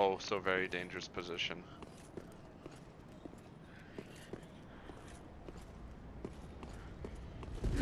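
Footsteps clank on stone.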